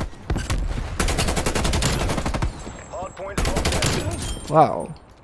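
Rapid rifle fire rattles in quick bursts.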